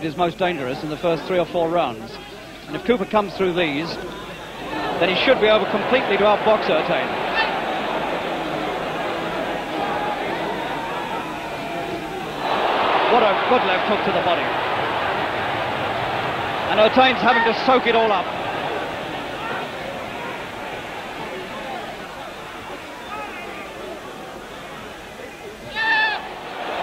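A large crowd cheers and roars in a big hall.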